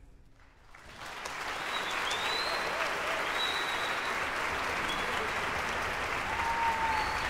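A large audience applauds loudly in a big echoing hall.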